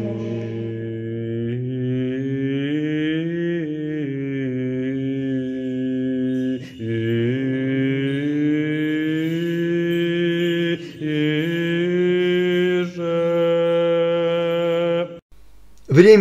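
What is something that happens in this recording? Men chant slowly and steadily in a large echoing hall.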